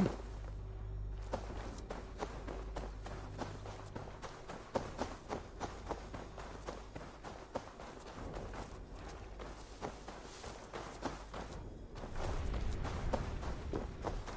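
Footsteps thud and crunch on grass and dirt.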